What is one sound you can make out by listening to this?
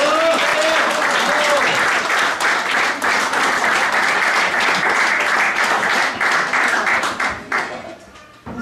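A crowd applauds and cheers in a large room.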